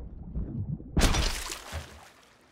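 Water splashes loudly as a swimmer breaks the surface.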